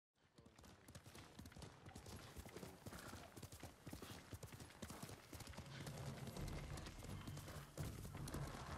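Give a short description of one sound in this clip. Horse hooves thud rapidly on a dirt path.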